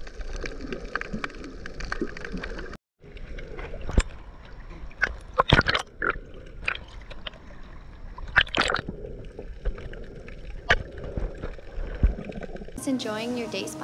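Water gurgles and splashes around a microphone held underwater.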